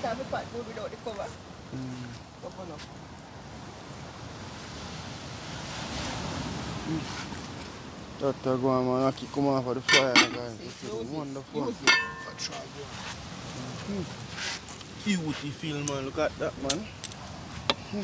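A man talks casually nearby.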